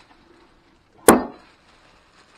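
A heavy box thumps down on a wooden table.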